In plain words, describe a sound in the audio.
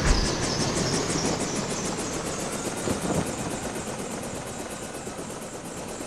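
An airship engine drones and chugs steadily.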